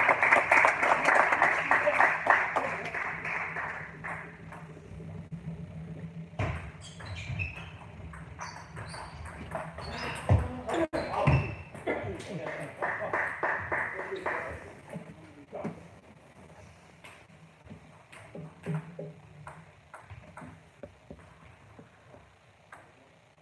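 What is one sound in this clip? A table tennis ball clicks back and forth off bats and the table.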